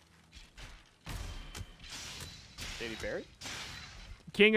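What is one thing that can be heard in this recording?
A blade swings and strikes a creature with sharp hits.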